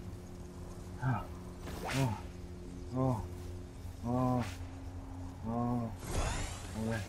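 A small robot chirps and warbles in short bursts.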